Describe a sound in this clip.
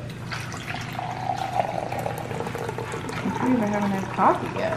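Liquid pours into a ceramic mug.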